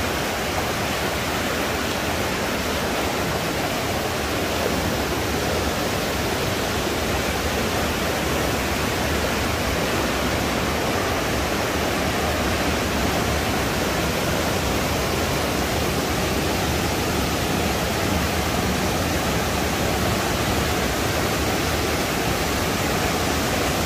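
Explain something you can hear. A mountain stream rushes and splashes loudly over rocks close by.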